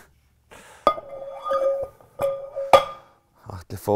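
Metal weight plates clank and ring on a bar.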